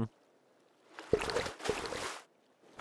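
Water splashes briefly.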